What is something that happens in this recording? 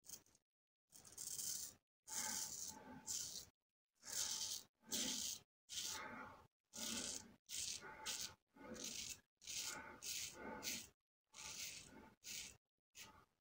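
A double-edge safety razor scrapes through lathered stubble in short strokes.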